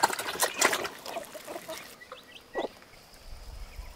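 Chickens and ducklings peck at grain.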